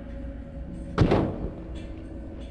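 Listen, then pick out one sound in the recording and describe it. A short whooshing sound effect plays as a game menu opens.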